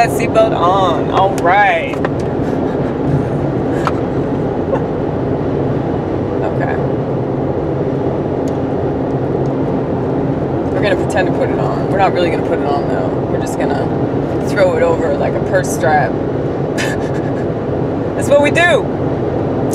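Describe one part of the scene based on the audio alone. A vehicle's engine hums steadily from inside.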